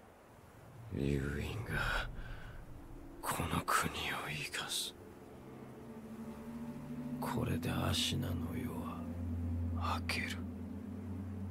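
A man speaks slowly in a deep, low voice.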